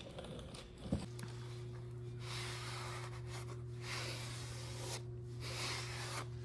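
A cloth rubs and wipes against metal.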